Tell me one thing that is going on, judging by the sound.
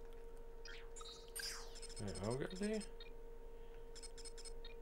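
Game menu blips chime as options are selected.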